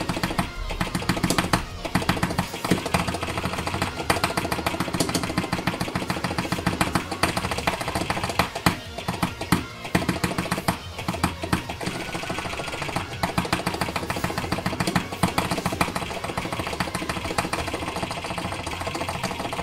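Fast electronic music plays steadily.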